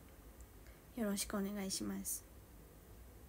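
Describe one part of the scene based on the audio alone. A young woman speaks briefly and softly, close by.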